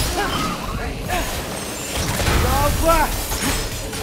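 Icy magic bursts with a crackling whoosh.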